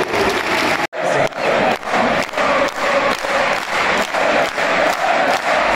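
A large crowd claps in a steady rhythm.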